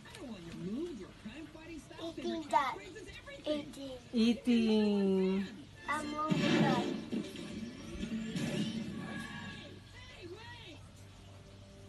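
Cartoon voices chatter excitedly through a television loudspeaker.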